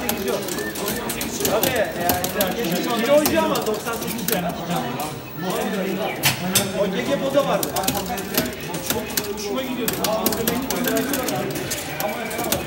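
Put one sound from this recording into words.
Fighting game punches and kicks crack and thud.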